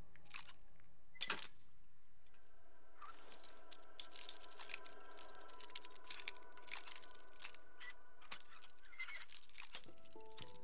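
A bobby pin scrapes and clicks inside a lock.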